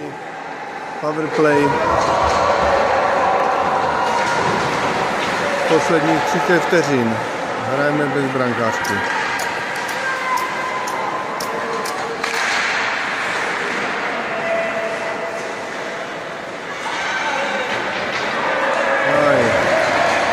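Skates scrape across the ice.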